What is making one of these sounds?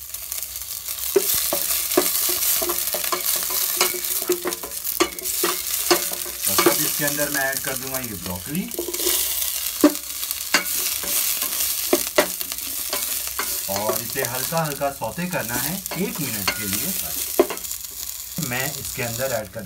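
A wooden spoon scrapes and knocks against a metal pan.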